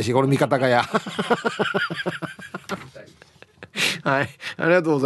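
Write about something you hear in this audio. A middle-aged man talks with animation.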